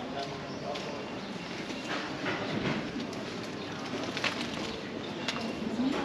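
Footsteps of passersby tap on cobblestones.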